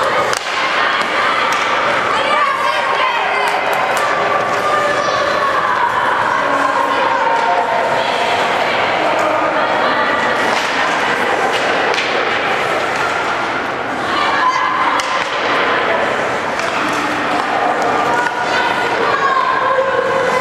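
Children shout nearby in a large echoing hall.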